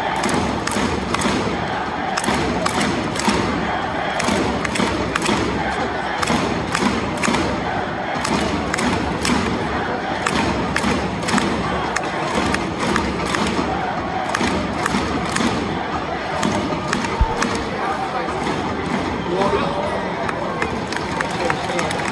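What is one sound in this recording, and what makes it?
A stadium crowd claps in a steady rhythm.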